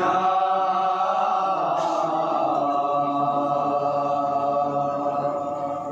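A group of men chant together in a mournful tune.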